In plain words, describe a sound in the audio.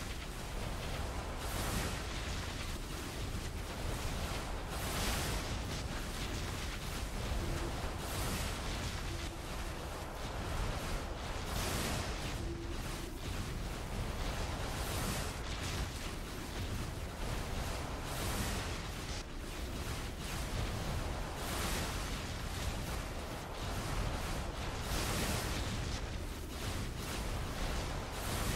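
Electric blasts crackle and burst in rapid succession.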